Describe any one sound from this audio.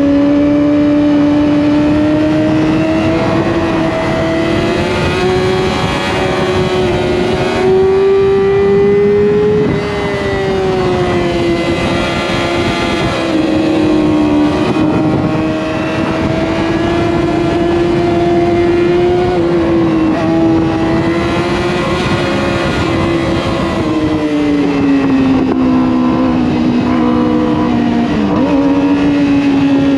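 A motorcycle engine drones loudly at high revs, its pitch rising and falling through the bends.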